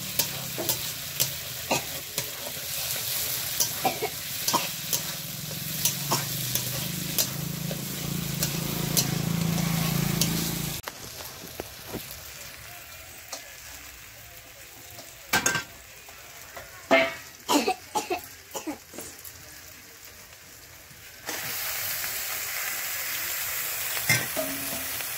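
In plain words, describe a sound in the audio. Food sizzles and hisses loudly in a hot pan.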